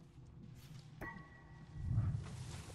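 A sword is drawn with a metallic ring.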